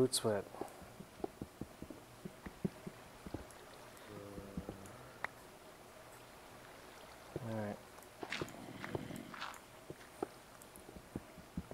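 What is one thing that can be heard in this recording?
Blocks crack and thud as a pickaxe digs in quick, sharp knocks.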